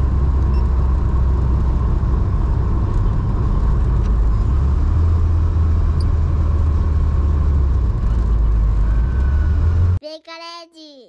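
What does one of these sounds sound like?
A car engine rumbles loudly inside the cabin while driving.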